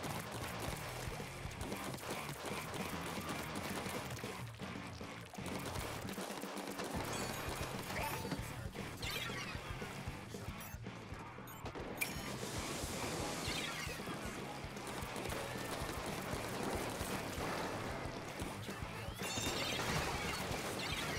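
Ink guns fire in quick wet, splattering bursts.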